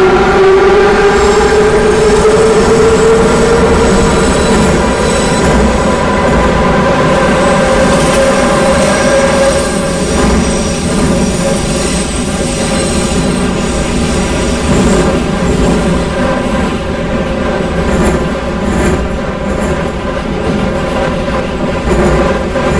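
A subway train's electric motor whines steadily as it speeds through a tunnel.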